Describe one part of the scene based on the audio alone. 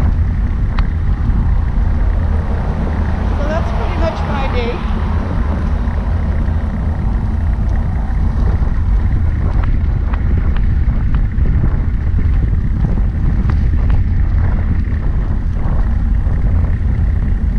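Wind buffets the microphone outdoors in a steady low rumble.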